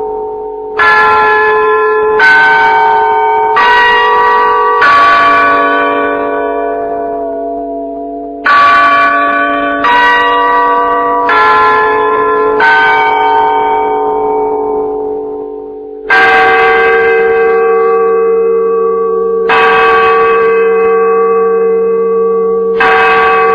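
A large bell rings out in repeated loud strokes, each tone ringing on and slowly fading.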